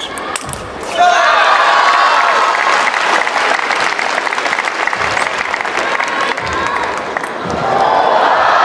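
A crowd cheers and applauds loudly in a large echoing hall.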